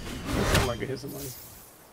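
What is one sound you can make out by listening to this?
An axe whooshes through the air and strikes.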